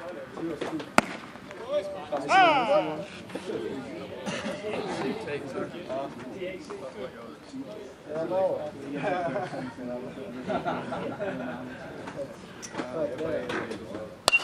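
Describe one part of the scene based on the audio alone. A ball smacks into a catcher's mitt with a sharp pop.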